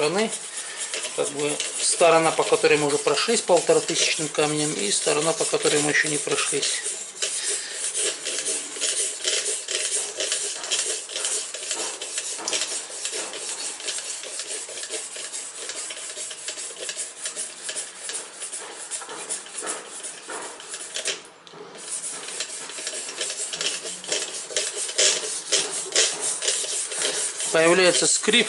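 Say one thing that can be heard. A sharpening stone scrapes back and forth along a knife blade in quick strokes.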